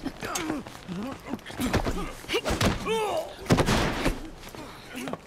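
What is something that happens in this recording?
Blows land with heavy thuds in a scuffle.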